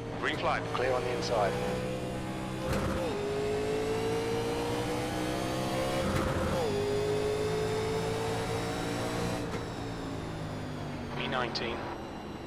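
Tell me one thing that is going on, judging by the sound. A racing car engine roars steadily, climbing in pitch and dropping sharply at each gear change.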